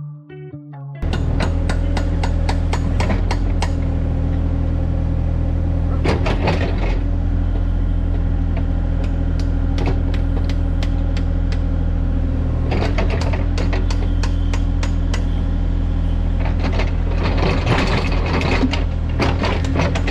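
A digger's metal bucket scrapes and knocks through dirt and roots.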